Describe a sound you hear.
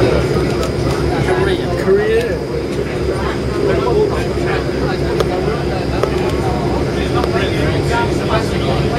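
Airport vehicles rumble with a low, steady engine hum.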